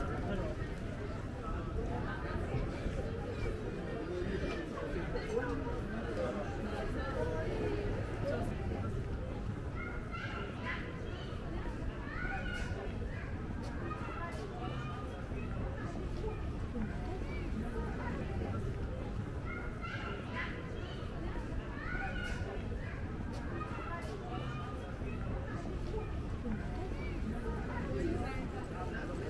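Men and women chat in a lively crowd nearby outdoors.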